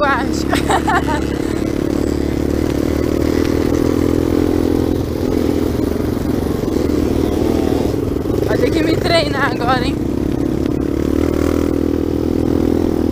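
A dirt bike engine hums at a steady cruise on a dirt road.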